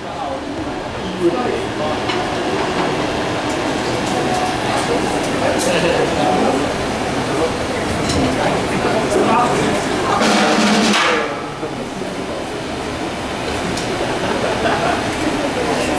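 A live band plays loud rock music through speakers.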